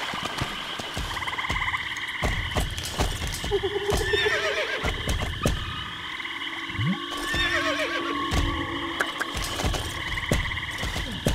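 A horse's hooves thud on soft ground in a quick, steady rhythm.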